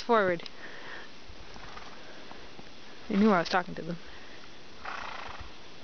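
Horses walk through snow in the distance.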